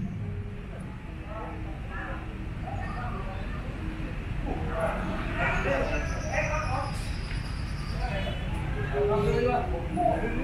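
Several men chat with one another at a distance.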